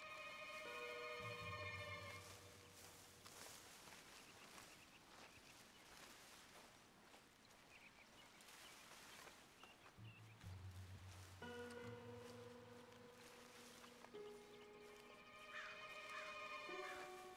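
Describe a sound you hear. Footsteps crunch through undergrowth.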